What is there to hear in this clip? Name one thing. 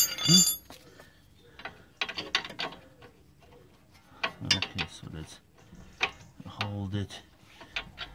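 A wrench clicks and scrapes against a metal bolt.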